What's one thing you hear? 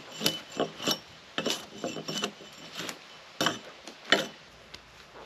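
A hatchet chops into a wooden log with sharp knocks.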